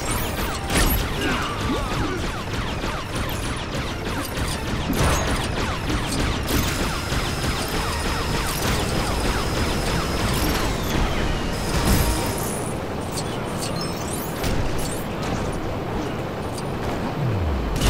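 Laser blasts fire in rapid bursts.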